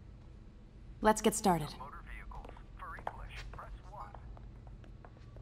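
An automated voice speaks through a phone.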